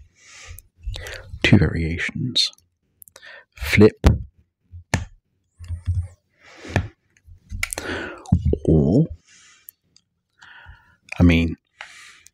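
Objects click and tap close to a microphone.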